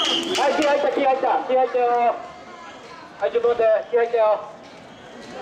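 A man shouts calls to the crowd.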